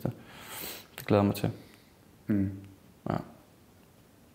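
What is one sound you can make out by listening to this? A man speaks in short bursts, close by.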